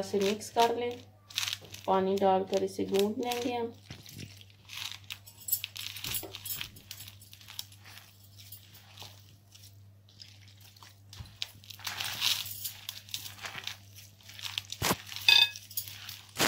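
Hands squish and knead a crumbly mixture.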